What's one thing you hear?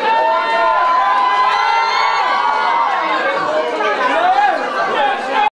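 A rock band plays loudly with electric guitars.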